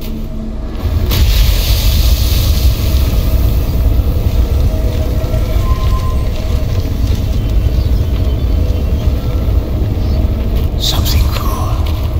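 A fiery burst of sparks roars with a deep, steady rumble.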